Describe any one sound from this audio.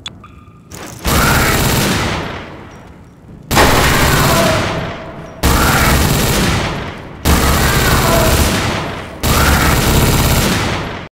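A gun fires with loud booming blasts that fade slowly.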